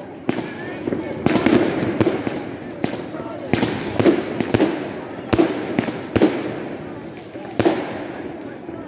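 Fireworks crackle and pop overhead.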